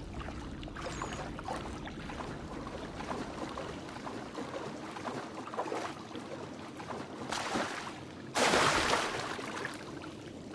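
Water splashes heavily as someone wades through it.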